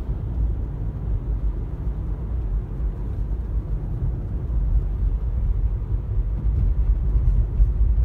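A car engine hums steadily with a low rumble of tyres on the road, heard from inside the car.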